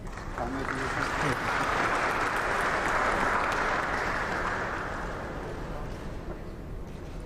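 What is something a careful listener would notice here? A crowd applauds, swelling and then slowly fading.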